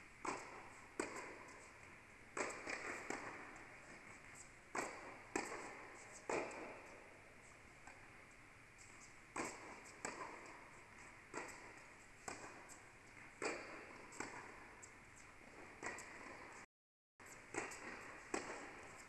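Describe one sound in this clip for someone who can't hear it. Tennis balls are struck with rackets, echoing through a large indoor hall.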